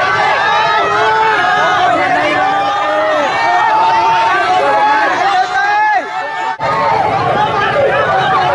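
A large crowd of men and women chants and shouts outdoors.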